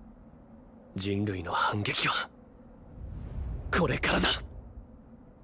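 A young man shouts with determination.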